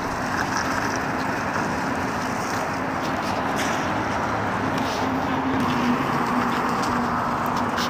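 Traffic hums steadily on a highway in the distance.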